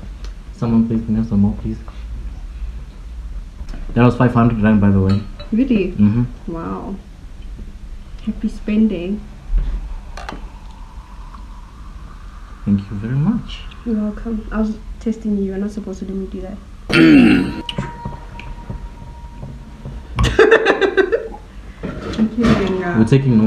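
Another young woman answers and laughs close by.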